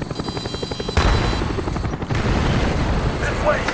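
A rocket launcher fires with a loud blast.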